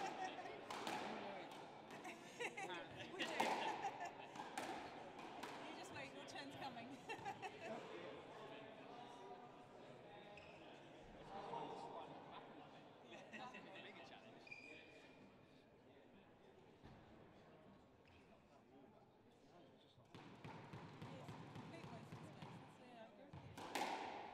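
A squash ball smacks sharply off the walls during a rally.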